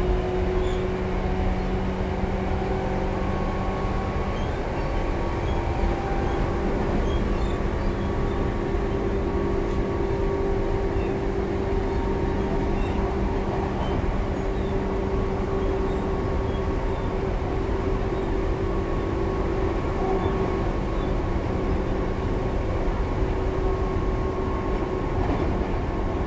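An electric train hums steadily close by.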